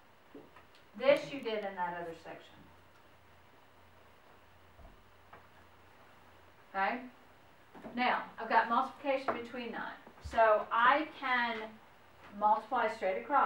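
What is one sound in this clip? A woman speaks calmly and clearly.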